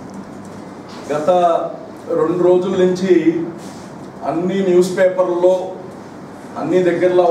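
A man speaks into microphones in a firm, addressing tone.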